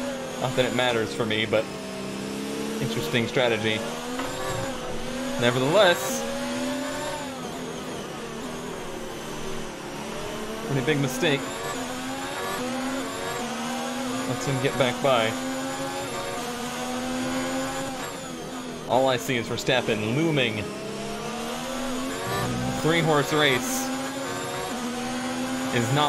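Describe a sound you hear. A racing car engine whines at high revs, rising through the gears and dropping sharply when braking.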